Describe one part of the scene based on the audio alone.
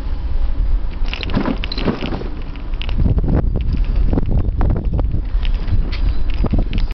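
Tyres hum and rattle on a road surface.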